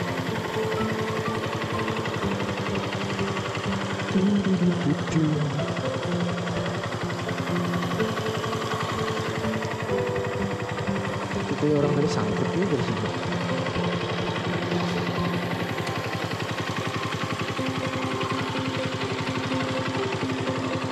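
An engine runs with a steady droning hum.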